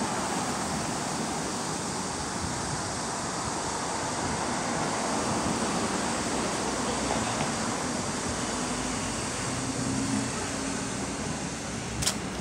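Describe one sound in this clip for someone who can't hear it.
Cars drive past on a nearby street.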